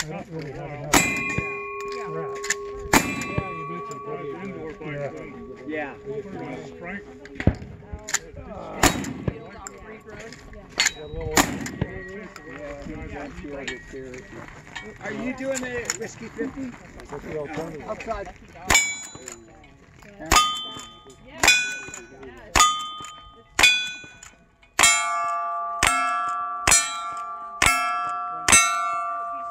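Steel targets ring out with a clang after shots hit them.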